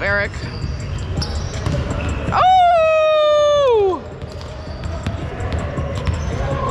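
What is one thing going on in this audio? Young men and women call out to each other across the gym.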